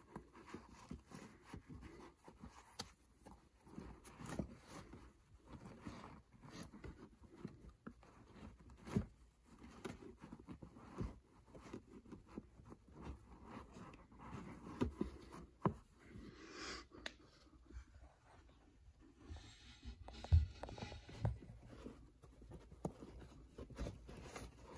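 Fabric caps rustle and tap softly as a hand flips through them.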